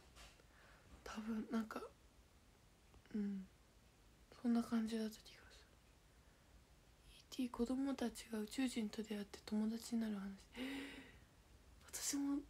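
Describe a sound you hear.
A young woman speaks softly and casually, close to a microphone, in short bursts.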